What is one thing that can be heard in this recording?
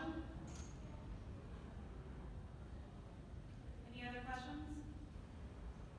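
A young woman speaks calmly into a microphone in a large echoing room.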